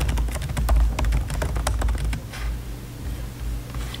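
Fingers tap quickly on a laptop keyboard.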